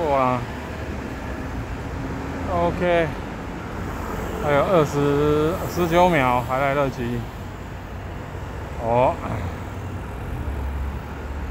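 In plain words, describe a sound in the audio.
A scooter engine hums steadily.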